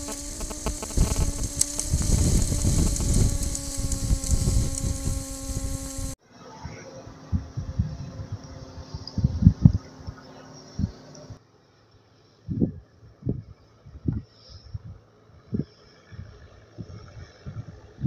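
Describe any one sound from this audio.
Wind buffets a microphone in heavy gusts.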